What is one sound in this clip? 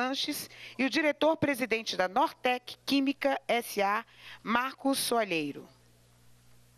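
A man speaks calmly and close up.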